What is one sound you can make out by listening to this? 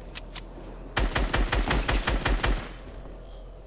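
An assault rifle fires rapid shots.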